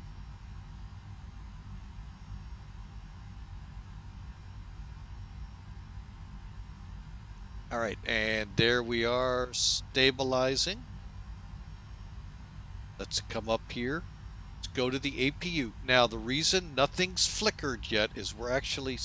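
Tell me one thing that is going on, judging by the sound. An aircraft engine hums steadily at idle.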